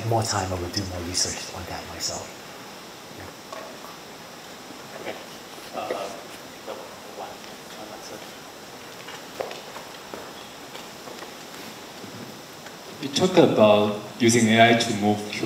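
A man speaks calmly through a microphone, with long pauses.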